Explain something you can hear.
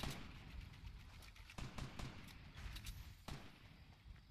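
Gunshots ring out in quick succession.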